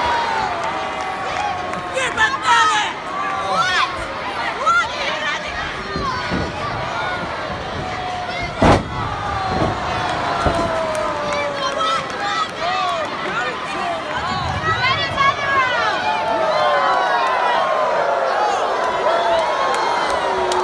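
A large crowd cheers and screams loudly in an echoing arena.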